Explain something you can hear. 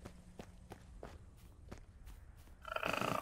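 Footsteps tread steadily on rough ground.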